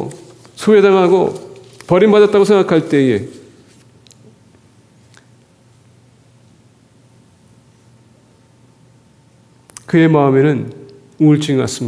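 A man speaks calmly through a microphone in an echoing hall, pausing between phrases.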